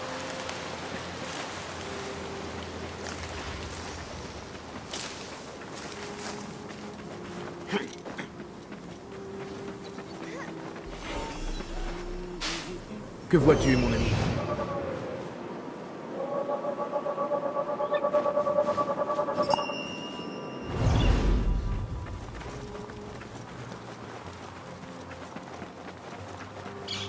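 Footsteps patter on dirt.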